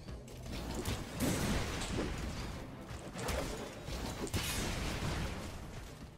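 Heavy crashes and thuds sound as fighters smash into each other.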